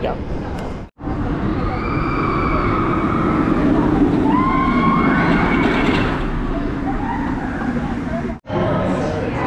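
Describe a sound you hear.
A roller coaster train roars past on its track.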